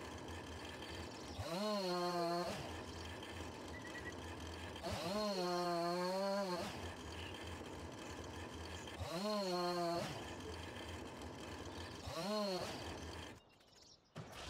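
A chainsaw revs up loudly in short bursts and idles between them.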